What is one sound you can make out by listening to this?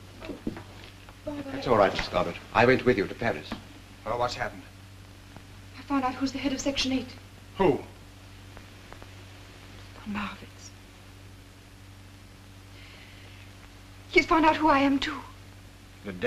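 A man speaks softly and earnestly.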